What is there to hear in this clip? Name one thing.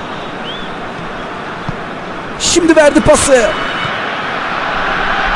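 A stadium crowd murmurs and roars steadily in the distance.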